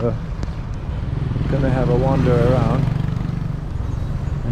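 A motorcycle engine rumbles as it rides past nearby.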